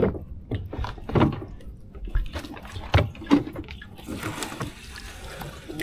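A wet fishing net is hauled over the side of a small boat, dripping water.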